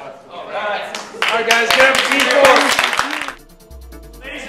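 A group of people clap and cheer.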